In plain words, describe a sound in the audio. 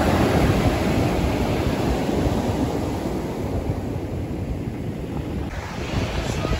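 Waves crash and wash over pebbles close by.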